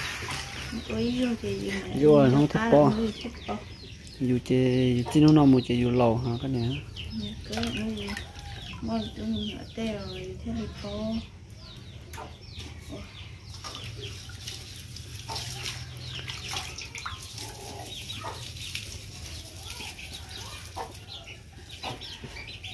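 Water splashes as leaves are washed in a basin.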